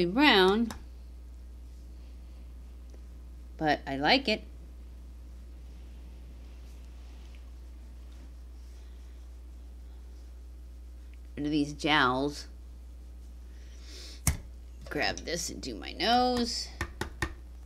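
A middle-aged woman speaks calmly and close to a microphone, in short phrases with pauses.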